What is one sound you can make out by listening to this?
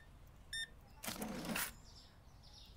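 A cash drawer slides open with a rattling whoosh.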